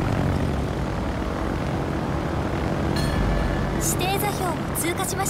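Propeller plane engines drone steadily.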